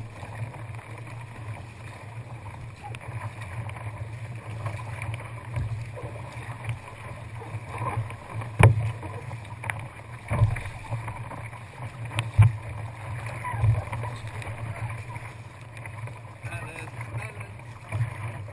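Waves splash and churn around a kayak.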